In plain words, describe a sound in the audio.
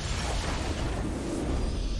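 A victory fanfare swells.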